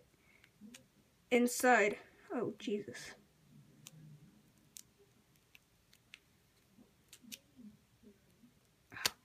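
Small plastic parts click softly as they are pressed into a foam tube.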